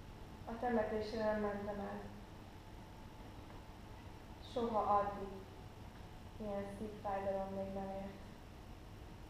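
A woman sings slow, drawn-out notes in a large hall.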